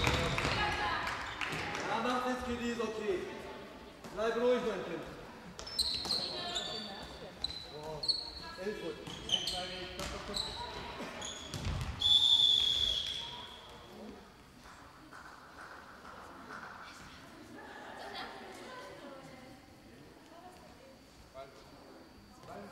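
A handball bounces on the floor.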